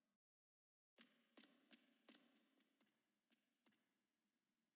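Magic spells zap and crackle in short bursts.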